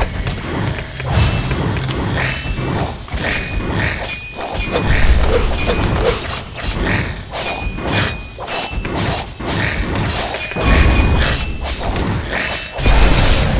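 Game towers fire and hit enemies with zaps and bangs.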